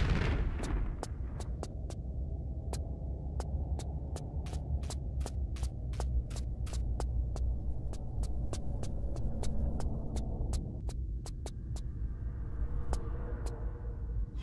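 Quick footsteps patter on a stone floor.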